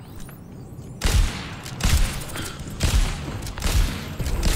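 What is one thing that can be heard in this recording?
A heavy weapon fires loud, booming blasts in quick succession.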